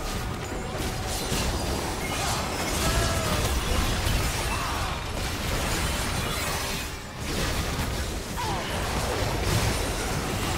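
Magic blasts, strikes and explosions crackle and boom in quick succession.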